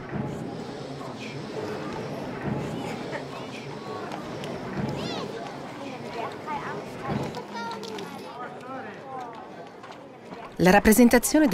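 A crowd of men and women murmurs and talks close by.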